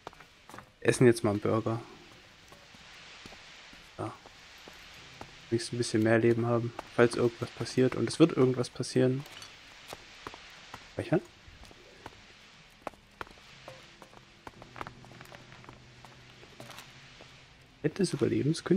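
Footsteps tap softly across a wooden floor.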